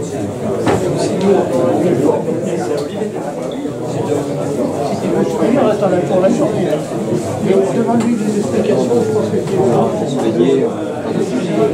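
A crowd of men and women chatter indoors in a large room.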